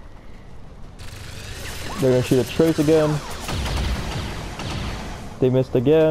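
Energy weapons fire in loud, rapid bursts.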